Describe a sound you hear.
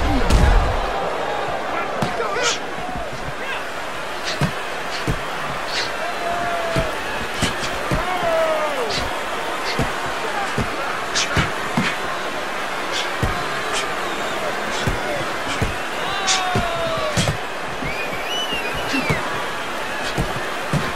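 Punches thud against bodies in quick, sharp blows.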